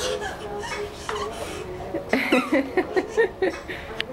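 A toddler giggles and squeals close by.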